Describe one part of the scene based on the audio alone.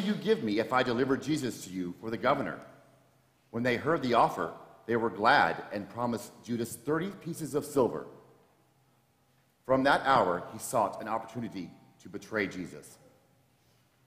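A man reads aloud through a microphone in a reverberant hall.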